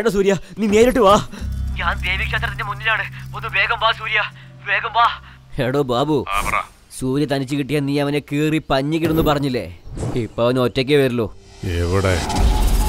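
A young man talks on a phone with animation.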